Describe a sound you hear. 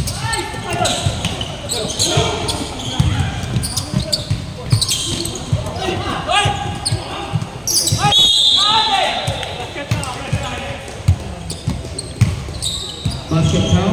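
Young men shout and call out to each other during play.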